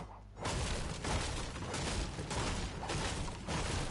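A pickaxe strikes a wall with sharp knocks.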